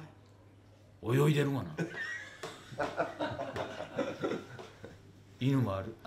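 Several elderly men laugh together.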